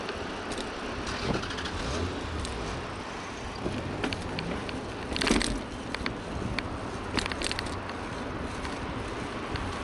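Wheels rumble and clatter over a rough pavement.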